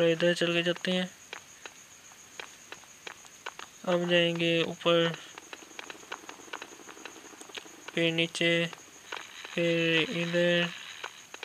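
Light footsteps patter steadily on a hard floor.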